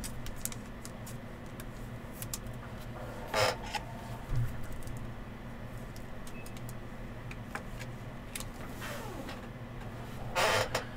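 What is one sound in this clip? Plastic card cases click and rustle as they are handled.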